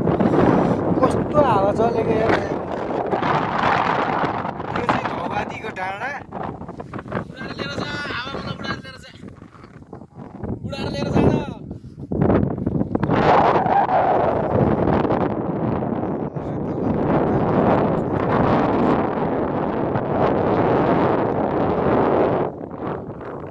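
Wind blows hard across an open hillside.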